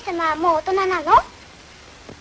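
A girl speaks.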